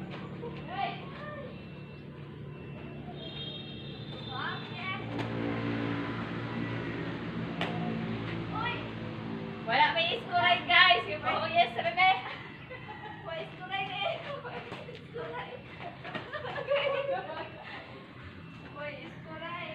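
Young girls shout and laugh outdoors while playing.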